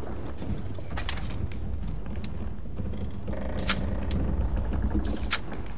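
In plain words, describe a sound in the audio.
A lock pick clicks and scrapes against metal pins in a lock.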